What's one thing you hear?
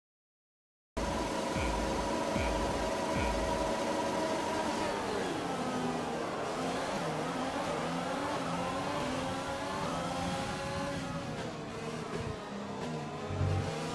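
Racing car engines idle with a steady drone, then roar and rise in pitch as the cars speed away.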